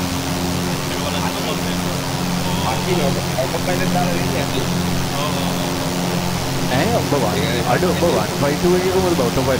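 A young man talks calmly into a headset microphone.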